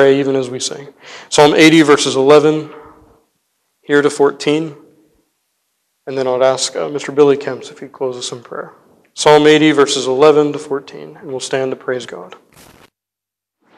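A man speaks calmly into a microphone, reading out in an echoing hall.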